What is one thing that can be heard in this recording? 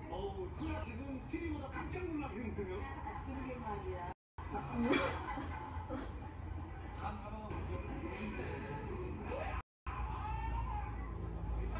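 A young woman blows hard into a small toy, huffing with effort.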